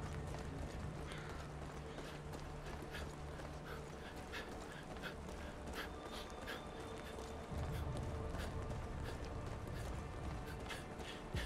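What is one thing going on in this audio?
Footsteps tread at a steady walking pace on a hard street.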